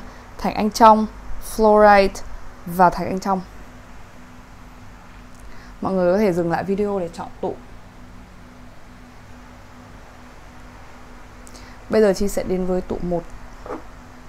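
A young woman speaks calmly and softly into a close microphone.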